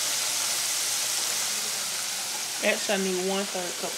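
Hot oil bubbles and sizzles steadily in a deep fryer.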